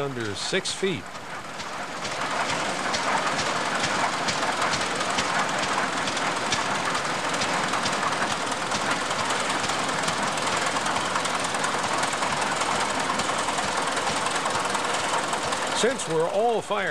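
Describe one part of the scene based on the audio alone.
A steam traction engine chugs and rumbles steadily outdoors.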